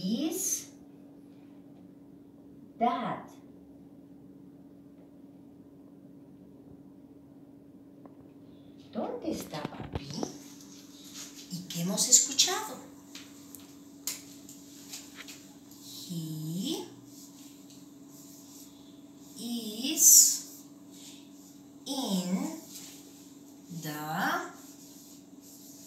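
A woman speaks slowly and clearly, as if teaching, close by.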